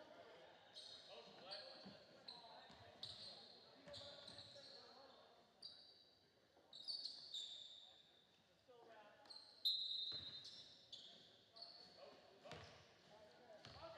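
Spectators murmur in a large echoing gym.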